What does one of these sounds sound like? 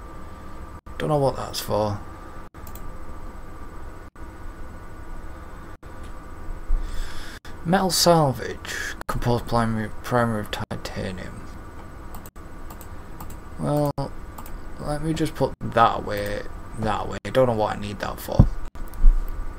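A young man talks casually into a microphone, in short bursts.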